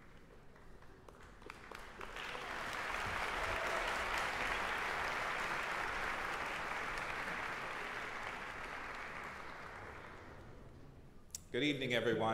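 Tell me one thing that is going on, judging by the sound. An audience applauds in a large echoing hall, swelling and then fading.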